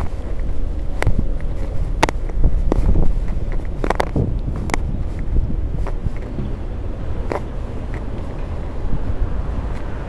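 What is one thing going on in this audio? Wind rumbles and buffets steadily against a moving bicycle.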